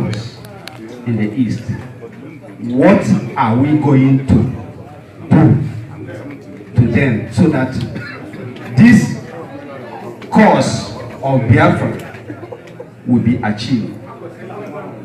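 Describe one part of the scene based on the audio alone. A man shouts loudly in an echoing hall.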